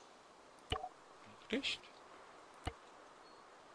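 Short electronic clicks sound from a game's menu.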